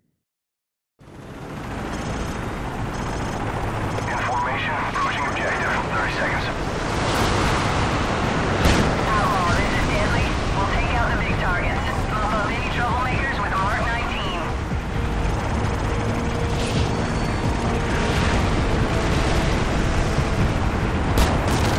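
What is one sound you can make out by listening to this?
Helicopter rotors thump loudly and steadily.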